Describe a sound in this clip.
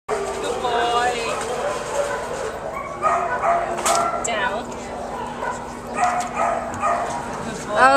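A young woman talks to a dog in a high, encouraging voice close by.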